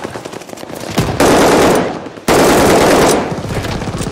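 Rapid gunfire blasts loudly.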